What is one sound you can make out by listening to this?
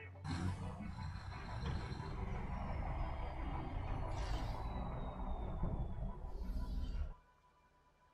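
A heavy vehicle engine rumbles loudly.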